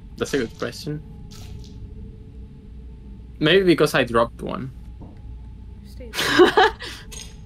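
A young woman talks with animation into a microphone, close up.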